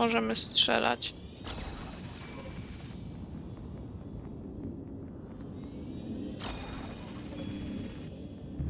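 A magical chime shimmers.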